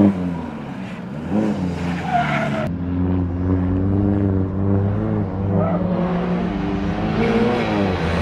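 A distant car engine drones across open ground.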